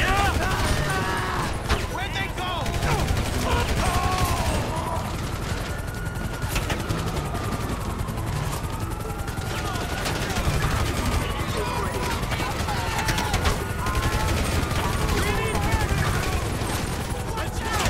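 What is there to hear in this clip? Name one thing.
Police sirens wail up and down.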